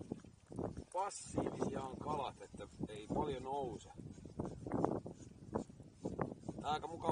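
A small ice fishing reel clicks as line is wound in.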